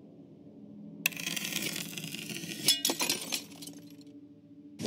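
A metal mechanism clicks and grinds as a key turns.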